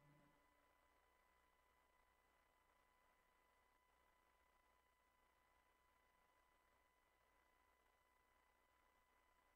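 An electronic synthesizer plays a steady, high electronic tone.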